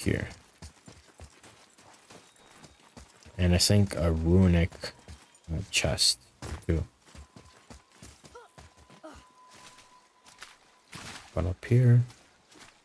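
Footsteps crunch on snow and dry ground.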